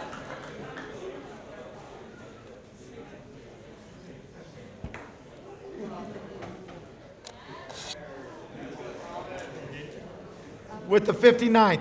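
Many people murmur and chatter in a room.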